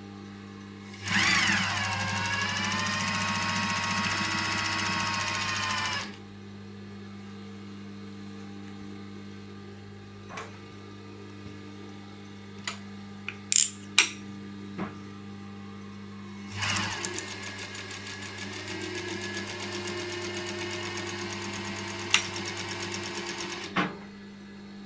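A sewing machine whirs rapidly as it stitches fabric.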